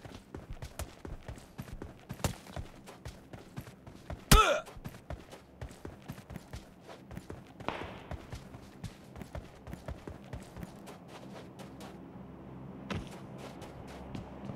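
Footsteps crunch quickly over dry ground.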